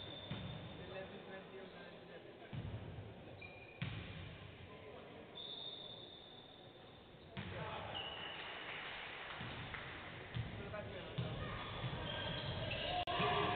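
Sneakers squeak on a hardwood court in a large, echoing hall.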